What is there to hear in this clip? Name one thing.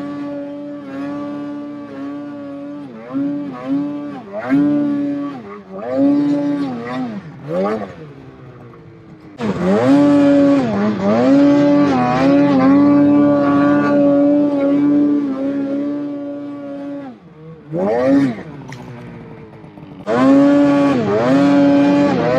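A snowmobile engine roars close by, revving up and down again and again.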